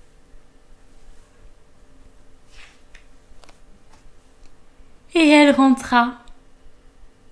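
Book pages turn with a soft rustle.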